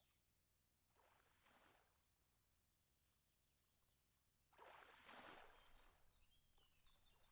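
A small fish flaps and thrashes on a line.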